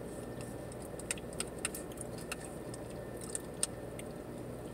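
A plastic spoon clicks against a plastic cup.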